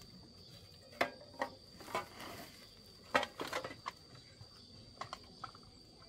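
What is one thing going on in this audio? A plastic sack rustles and crinkles as it is lifted and swung.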